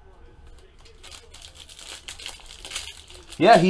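A foil wrapper crinkles as it is handled.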